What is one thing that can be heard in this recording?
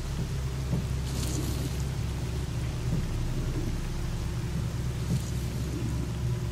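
Dry bushes rustle briefly as something brushes through them.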